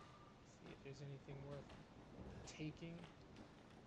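Wooden cabinet doors creak open.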